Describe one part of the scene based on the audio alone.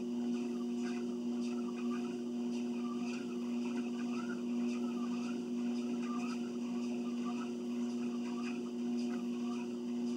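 A treadmill motor hums.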